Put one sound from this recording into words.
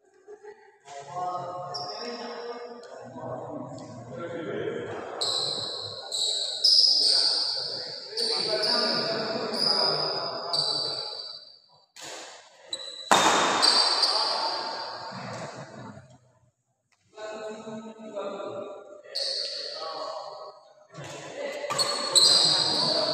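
A badminton racket strikes a shuttlecock in a large hall.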